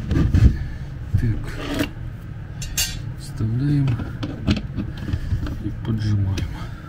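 Wooden boards knock and bump together.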